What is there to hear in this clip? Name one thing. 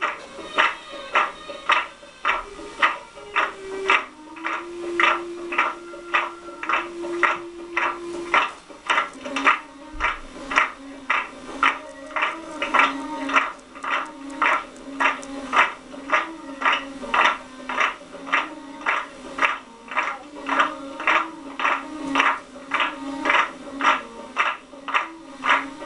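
A hand drum beats out a quick, steady rhythm close by.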